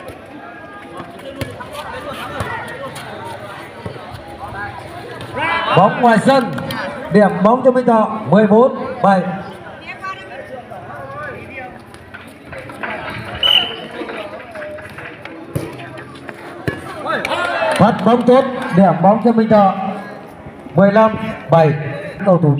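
A crowd of players and onlookers chatter outdoors.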